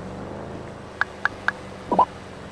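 A mobile phone beeps with short button tones.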